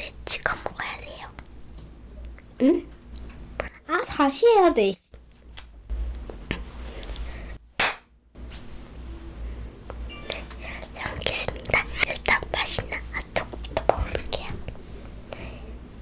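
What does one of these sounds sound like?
A young girl speaks brightly and close to a microphone.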